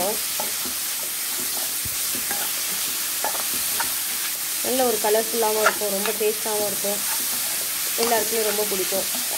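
Vegetables sizzle steadily in a hot pan.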